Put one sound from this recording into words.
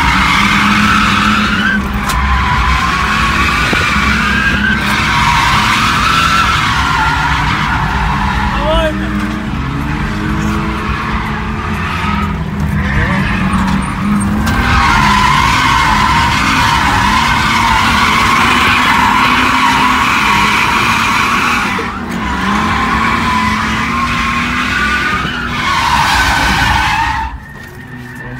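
Tyres screech loudly and repeatedly on pavement.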